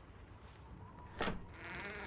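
A door handle clicks as a hand turns it.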